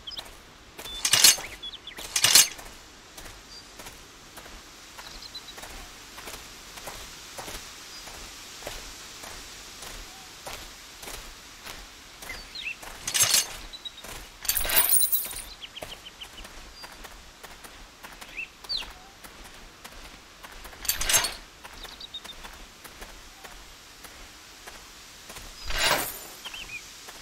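Short clinking item sounds ring out now and then as gear is moved around.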